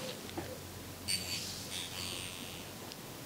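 A tuning fork rings with a high, clear tone.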